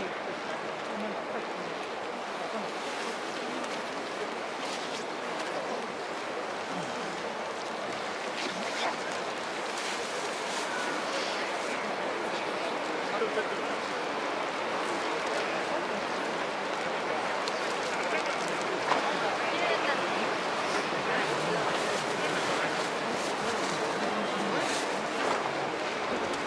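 A large stadium crowd murmurs and chatters steadily in the open air.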